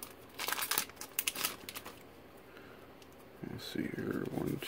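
Playing cards rustle and slide against each other.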